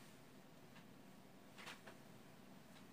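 A blanket rustles and flaps as it is shaken.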